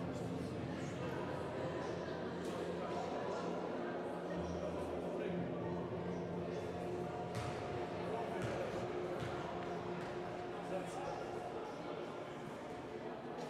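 Voices of a crowd murmur and echo through a large indoor hall.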